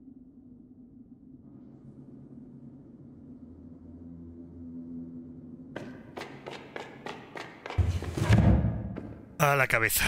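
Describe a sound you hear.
Footsteps shuffle slowly on a hard floor.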